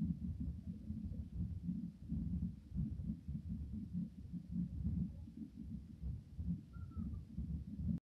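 A train rumbles along the tracks with a low, steady roar.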